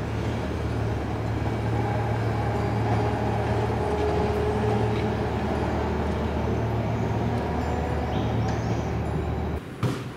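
A tram rolls past with a low rumble.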